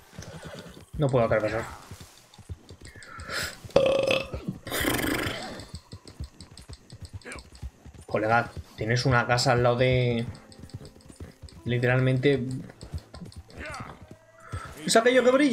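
A horse's hooves thud at a steady gallop.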